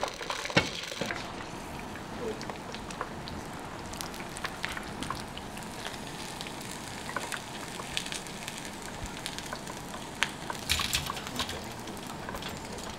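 Metal tongs clink against a pot.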